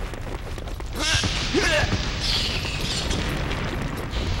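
Fire bursts with a loud roaring whoosh.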